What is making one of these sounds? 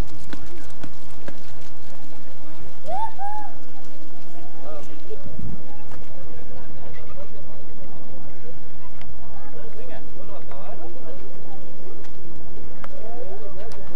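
Several men and women chat casually at a distance outdoors.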